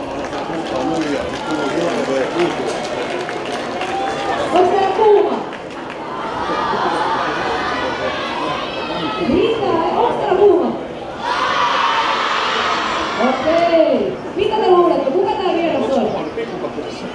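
A large crowd murmurs in the stands.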